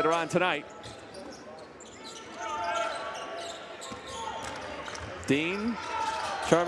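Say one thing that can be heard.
A crowd murmurs in a large echoing arena.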